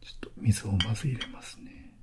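Liquid pours from a bottle into a small cup.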